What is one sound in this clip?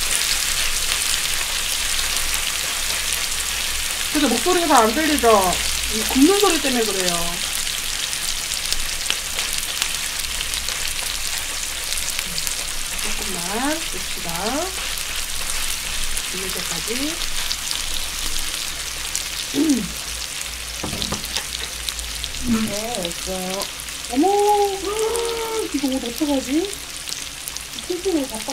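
Meat sizzles loudly and steadily on a hot grill.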